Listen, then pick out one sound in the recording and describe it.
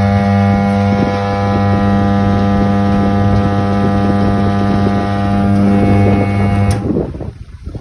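An electric machine hums loudly and steadily, then winds down and stops.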